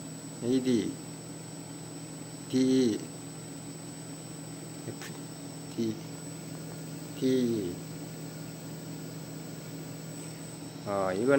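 An electronic control unit gives short beeps.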